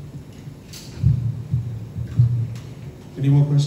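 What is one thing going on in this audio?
An older man speaks into a microphone.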